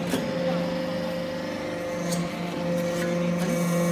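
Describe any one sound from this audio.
A shovel scrapes and clanks against metal shavings.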